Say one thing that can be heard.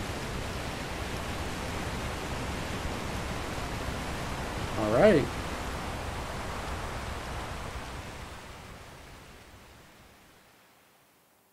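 Water churns and splashes loudly, then fades away.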